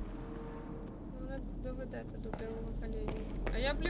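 A young woman talks quietly into a microphone.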